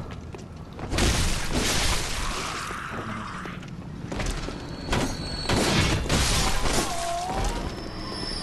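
A blade slashes and strikes with heavy thuds.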